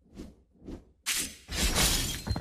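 A blade swishes through the air with a loud whoosh.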